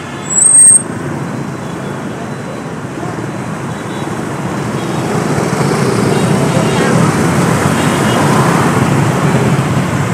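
Motorbike engines hum and buzz steadily in busy street traffic, growing louder.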